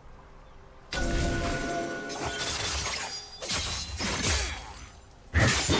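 Sword clashes and magic zaps from a video game battle ring out.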